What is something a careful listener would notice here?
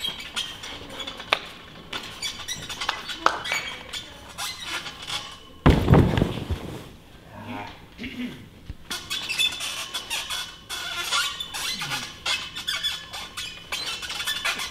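A gymnastics bar rattles and creaks as a gymnast swings.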